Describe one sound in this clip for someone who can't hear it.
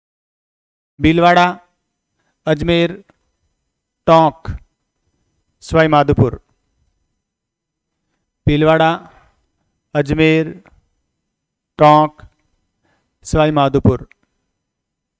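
A middle-aged man speaks calmly into a clip-on microphone, in short bursts with pauses.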